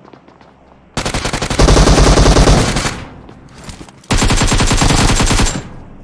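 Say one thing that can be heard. Rapid gunfire bursts out loudly.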